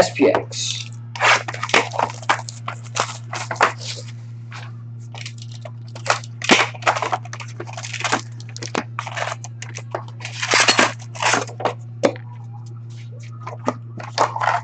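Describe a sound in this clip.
Cardboard packs rustle and slide as they are handled.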